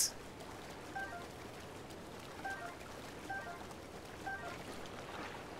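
A video game plays short chimes as items are picked up.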